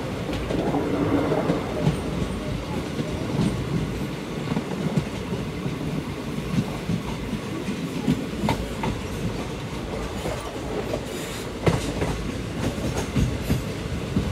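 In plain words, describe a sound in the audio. Wind rushes past an open train window.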